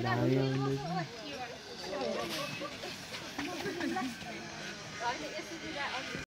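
Several women chat and laugh nearby outdoors.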